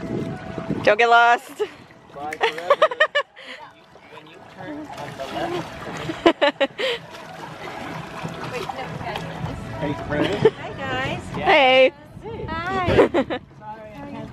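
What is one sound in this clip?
Paddles splash in the water.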